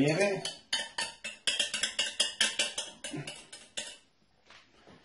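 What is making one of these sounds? A whisk rattles quickly against a metal pot.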